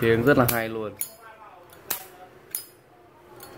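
A metal lighter lid clicks open with a sharp snap.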